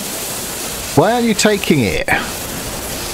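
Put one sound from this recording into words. A steam locomotive whistles.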